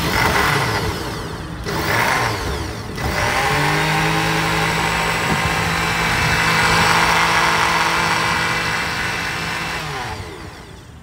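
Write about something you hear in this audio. A blender motor whirs loudly, churning a thick drink.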